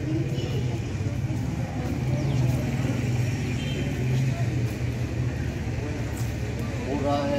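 A crowd of young people chatters nearby outdoors.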